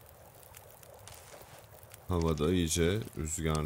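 A campfire crackles and pops softly.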